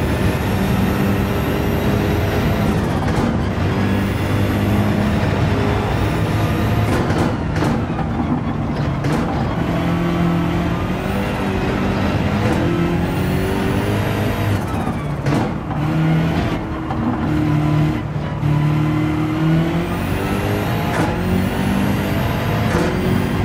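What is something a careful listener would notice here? Tyres squeal through corners.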